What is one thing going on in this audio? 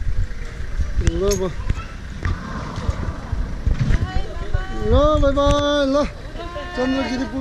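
Elderly women talk nearby outdoors.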